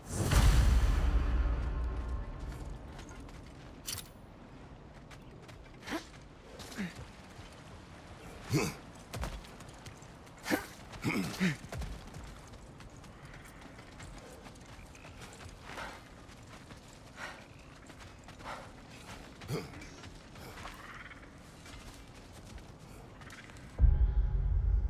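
Heavy footsteps crunch on dirt and grass.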